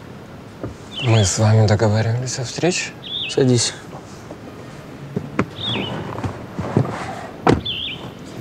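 A man speaks calmly inside a car.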